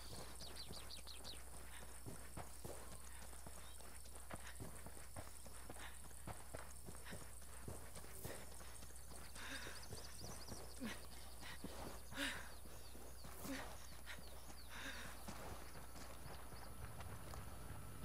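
Footsteps crunch quickly over dry gravel and dirt.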